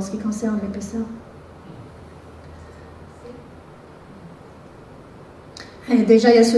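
A woman speaks calmly through a microphone in a large echoing hall, pausing between phrases.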